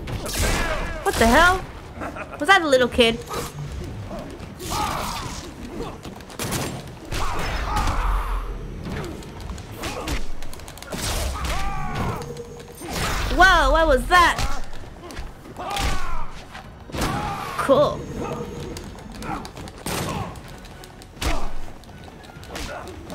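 Punches and kicks land with sharp, heavy thuds in quick bursts.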